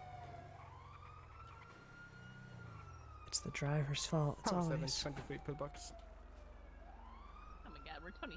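An ambulance engine idles with a low rumble.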